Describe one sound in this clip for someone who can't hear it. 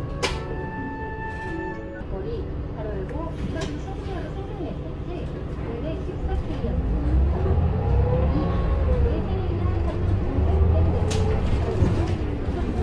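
A bus engine hums low inside the cabin, then rumbles louder as it speeds up.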